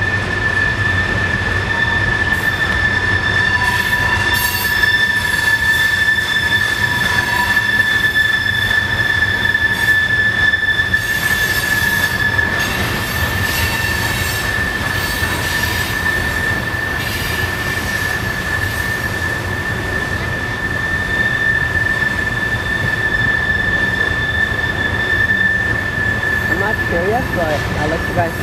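Freight train cars rumble and clatter steadily past on the rails.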